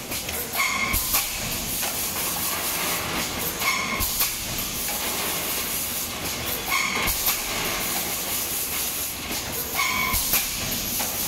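Metal parts clack and knock as the machine cycles.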